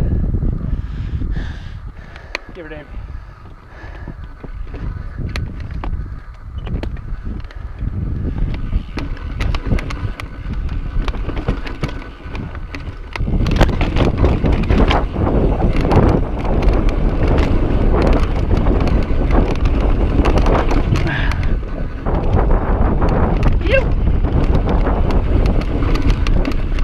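Bike tyres roll and crunch over rock and dirt.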